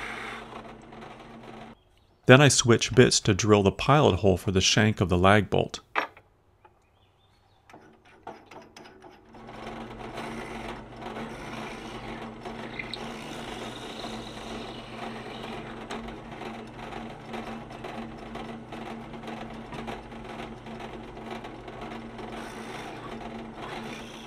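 A drill bit grinds into wood.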